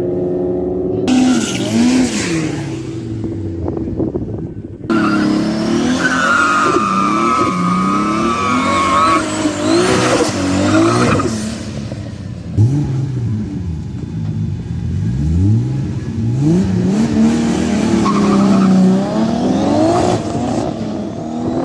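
A car engine revs loudly and roars.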